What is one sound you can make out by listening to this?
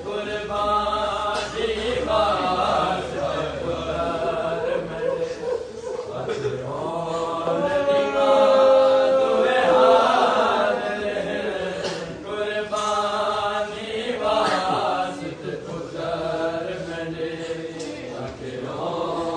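A crowd of men chants loudly together in a rhythmic lament.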